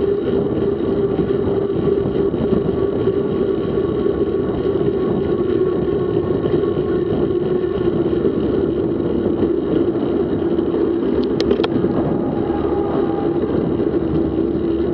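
Wind rushes steadily past while riding.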